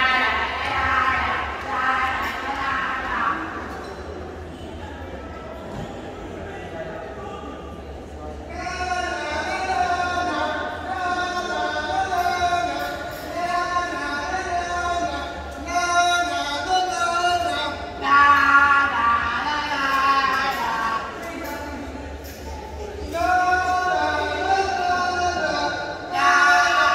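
Music with singing plays loudly through loudspeakers in a large echoing hall.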